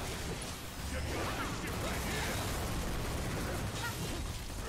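Explosions burst and crackle with heavy booms.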